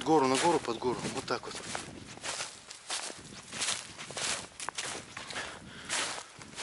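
A man speaks with animation close by, outdoors.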